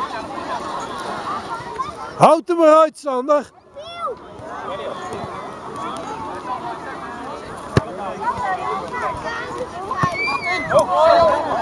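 Young children chatter and call out across an open field.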